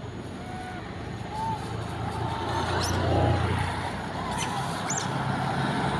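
A monkey gives short squeaky calls nearby.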